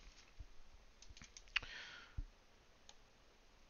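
Plastic wrap crinkles under fingers.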